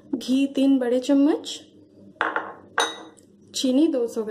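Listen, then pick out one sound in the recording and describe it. Small glass bowls clink softly as they are picked up and set down.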